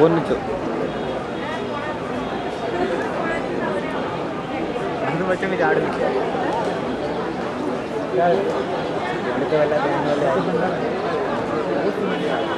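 Men and women chatter in a lively crowd nearby.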